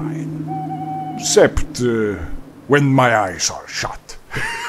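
A man speaks calmly and close.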